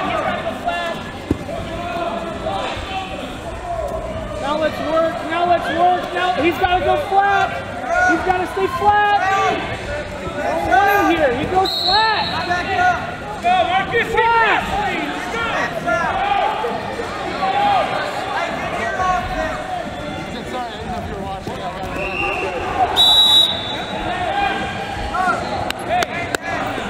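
Wrestling shoes squeak on a mat.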